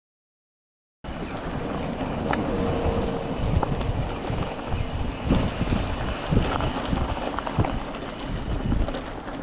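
Bike tyres crunch and rattle over a rough dirt trail.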